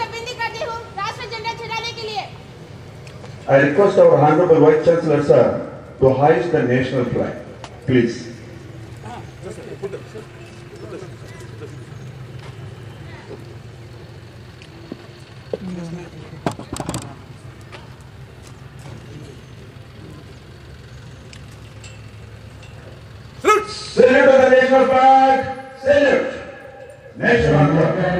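A man shouts parade commands loudly outdoors.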